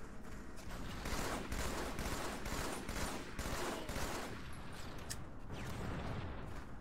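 Gunfire bursts from a video game.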